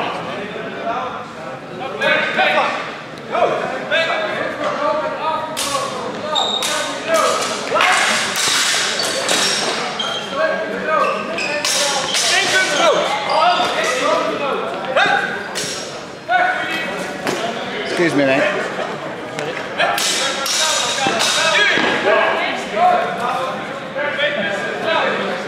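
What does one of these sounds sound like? Men and women talk and call out in a large echoing hall.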